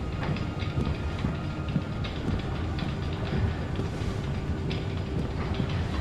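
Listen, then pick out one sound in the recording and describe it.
Footsteps thud on a hard metal floor.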